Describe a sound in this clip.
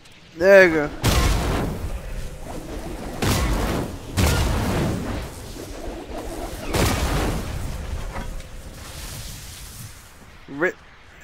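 Footsteps crunch and slide across snow.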